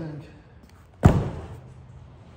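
A cardboard box thuds onto a wooden table.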